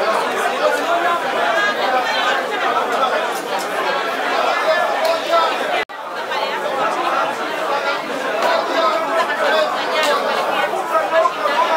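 A crowd of men chatter all around, close by.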